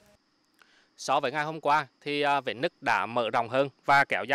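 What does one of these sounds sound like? A young man speaks clearly into a microphone, close by.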